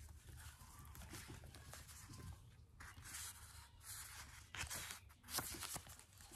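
Paper cards rustle and slide against each other.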